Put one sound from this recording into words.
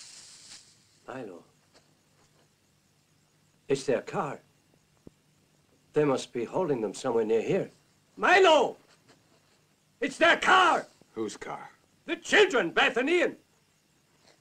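An elderly man speaks in a low, earnest voice.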